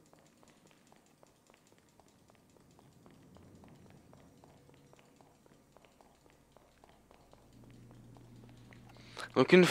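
Quick footsteps patter on a hard floor.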